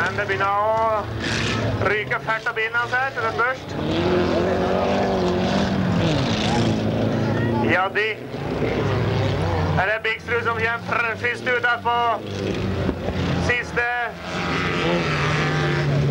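Tyres skid on loose gravel.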